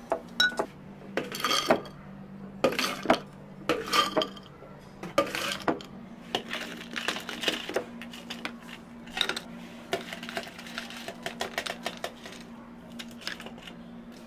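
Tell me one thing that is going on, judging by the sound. Crushed ice rattles and clatters into glass jars.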